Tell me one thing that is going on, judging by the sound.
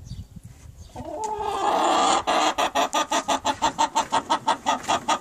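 A hen clucks loudly in a fast, steady rhythm close by.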